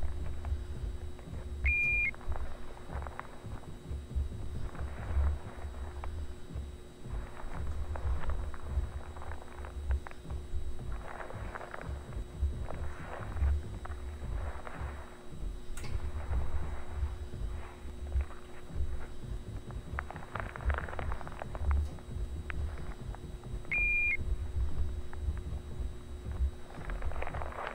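Fluorescent ceiling lights hum steadily.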